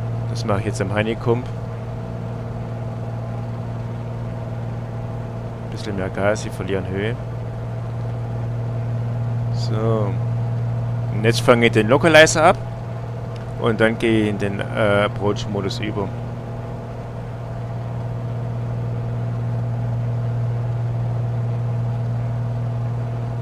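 A six-cylinder single-engine piston airplane drones in cruise, heard from the cockpit.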